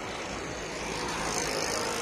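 An auto-rickshaw drives past close by.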